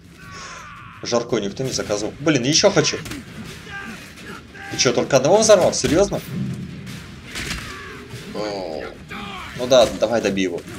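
Punches and blows thud in a brawl.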